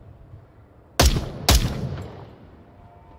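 A rifle fires two loud shots that echo briefly.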